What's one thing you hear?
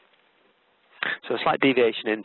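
A man talks calmly and clearly into a close microphone.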